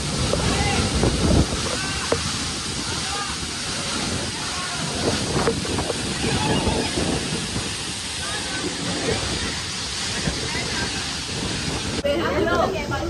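A waterfall roars steadily as water crashes down.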